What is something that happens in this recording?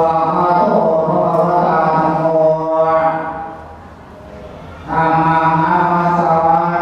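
A group of men and women chant a prayer together in a steady drone, pausing briefly before starting again.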